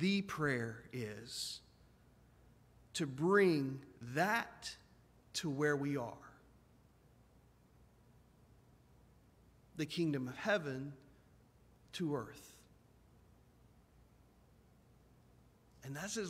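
A middle-aged man speaks with emphasis through a microphone in a large echoing hall, pausing between phrases.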